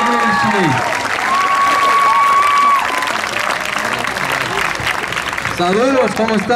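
A large crowd cheers and chatters loudly.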